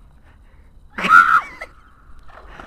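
A young man shouts from the water some distance away.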